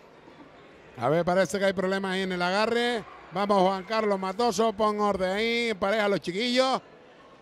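A man speaks loudly and clearly.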